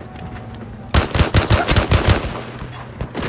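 A pistol fires several quick, loud shots.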